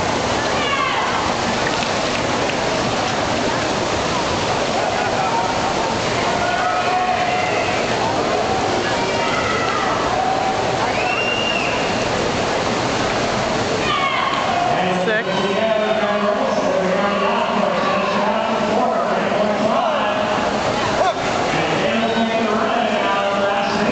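A large crowd cheers and shouts in a big echoing hall.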